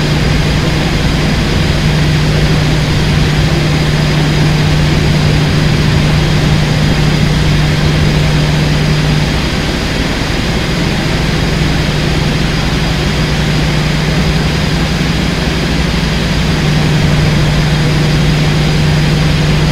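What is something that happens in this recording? Train wheels rumble and clatter on the rails.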